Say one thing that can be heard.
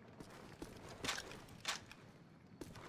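A gun clicks and clatters as it is handled.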